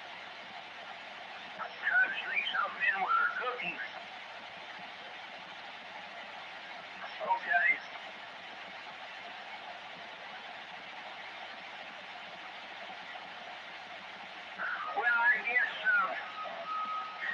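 A radio hisses with steady static.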